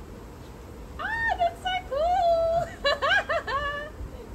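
A young woman talks with excitement close by, her voice high and lively.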